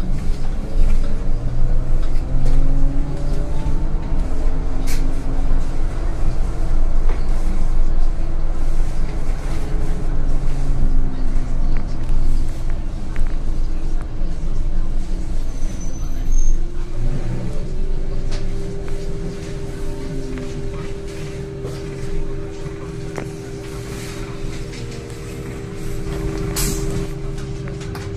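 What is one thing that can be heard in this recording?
A bus engine drones and whines, rising and falling in pitch as the bus drives.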